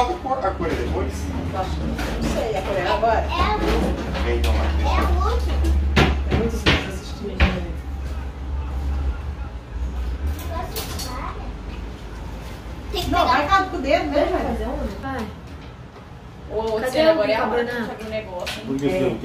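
Several adults talk casually nearby.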